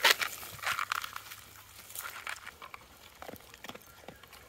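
A dog sniffs and munches through grass.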